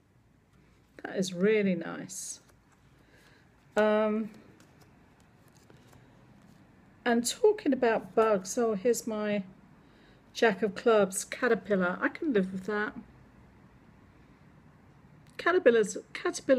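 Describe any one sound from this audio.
An elderly woman speaks calmly and close to a microphone, in short bursts with pauses.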